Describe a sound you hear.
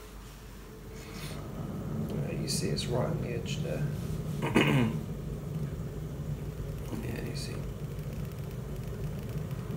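A kettle begins to rumble and hiss as its water heats.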